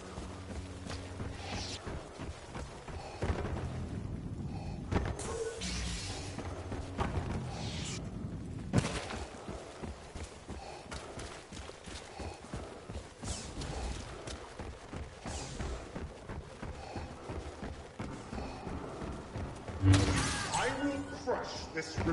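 Blaster shots fire in short bursts.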